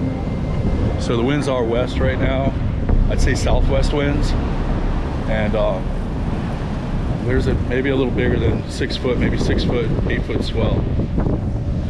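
A middle-aged man talks close to the microphone with animation.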